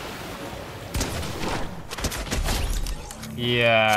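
Gunfire rings out in quick bursts.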